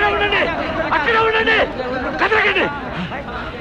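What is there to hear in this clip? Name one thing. Men shout loudly together.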